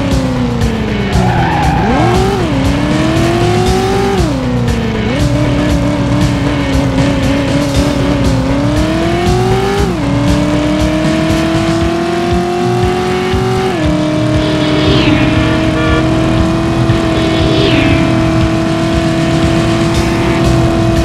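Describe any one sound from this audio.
A car engine roars and shifts up through the gears as the car speeds along.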